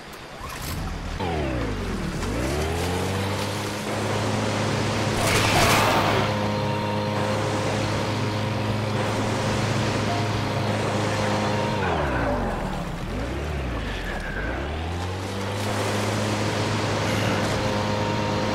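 A boat motor revs up and drones steadily, dropping and rising again in pitch.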